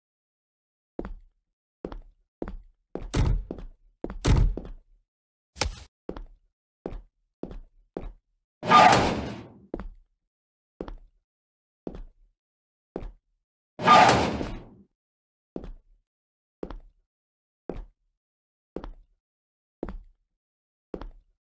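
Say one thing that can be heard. Footsteps thud at a steady walking pace on a hard floor.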